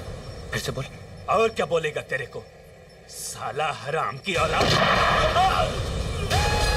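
A man shouts angrily close by.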